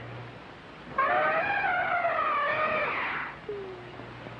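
A woman sings a long, wavering phrase.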